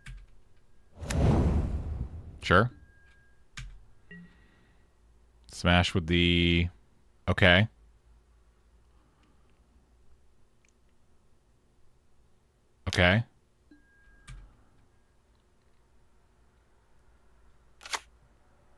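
A man speaks in short bursts into a close microphone.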